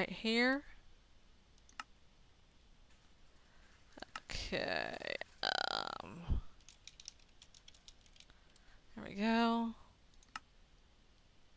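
Menu buttons click softly.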